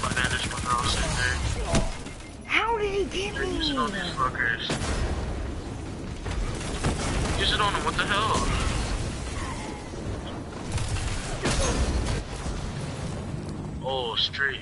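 Gunfire and explosions crackle and boom in a video game.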